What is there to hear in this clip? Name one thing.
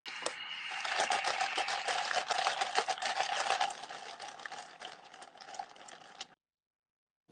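A liquid pours and fizzes into a plastic cup.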